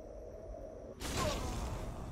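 A loud magical blast bursts with a rushing roar.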